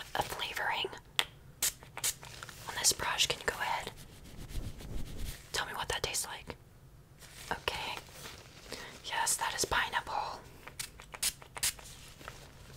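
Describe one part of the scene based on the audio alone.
Rubber gloves crinkle and rustle close to a microphone.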